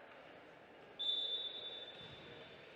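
A referee's whistle blows once, sharp and short.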